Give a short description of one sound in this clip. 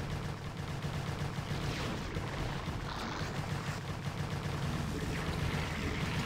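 Explosions boom as structures are destroyed.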